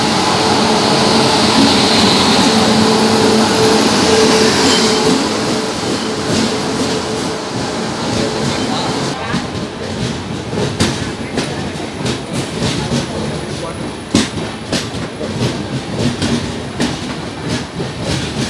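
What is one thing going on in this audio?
A train rumbles loudly past close by.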